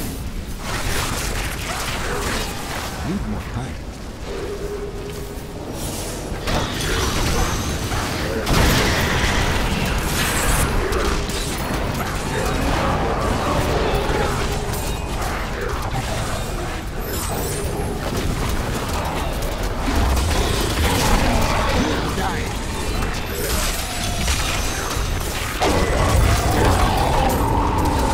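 Game spells and combat effects crackle, boom and clash without pause.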